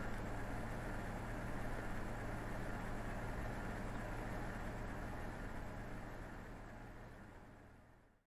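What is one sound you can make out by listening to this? A diesel locomotive rumbles past, its engine droning low and steady before fading out.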